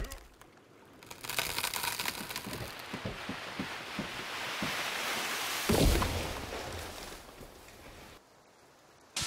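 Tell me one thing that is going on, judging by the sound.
A tree creaks and crashes to the ground.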